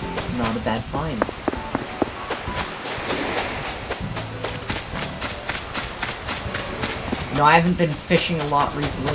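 Quick footsteps patter across sand and grass.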